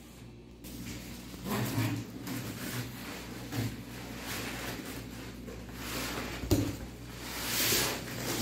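Cardboard flaps scrape and rustle as a box is handled.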